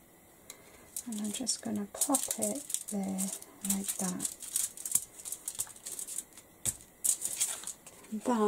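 Aluminium foil crinkles and rustles.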